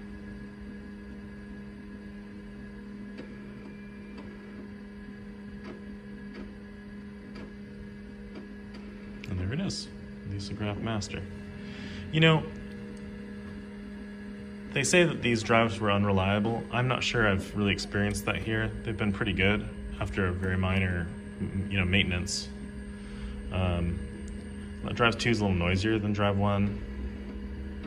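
An old computer hums steadily.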